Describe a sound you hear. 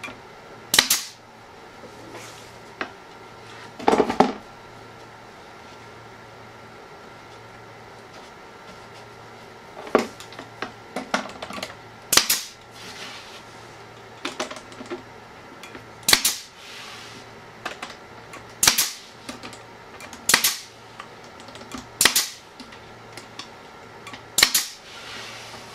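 A pneumatic nail gun fires with sharp bangs and hisses of air.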